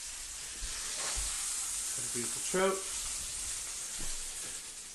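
Fish sizzles in a frying pan.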